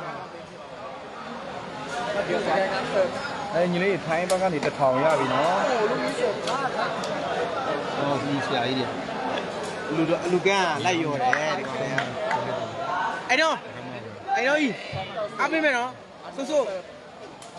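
A crowd of spectators cheers and shouts loudly nearby.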